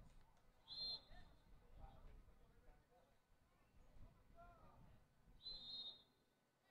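A referee's whistle blows two short shrill blasts.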